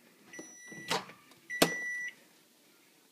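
A microwave oven beeps.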